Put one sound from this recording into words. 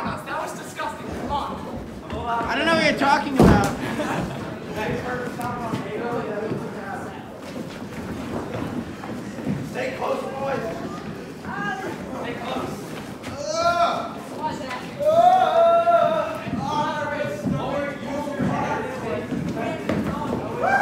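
Feet shuffle on a wooden floor.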